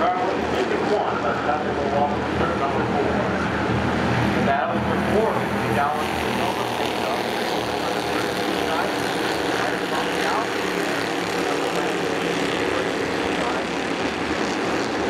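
Several race car engines roar loudly, rising and falling in pitch as the cars speed past.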